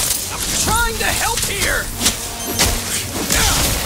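A blast bursts with a fiery roar.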